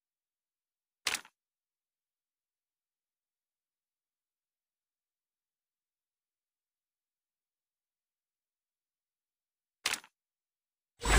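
A short game button click sounds.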